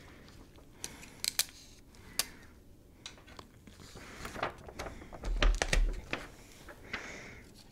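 Paper rustles and crinkles close by.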